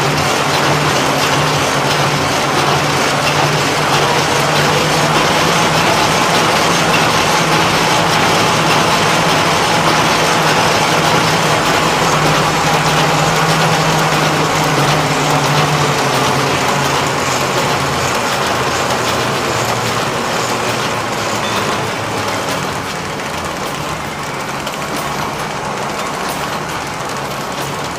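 A large machine runs with a loud, steady mechanical hum and clatter.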